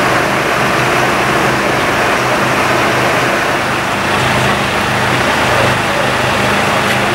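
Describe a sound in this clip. A fire engine's motor runs with a loud, steady roar.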